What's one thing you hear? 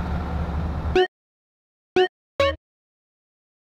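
Short electronic menu beeps sound three times.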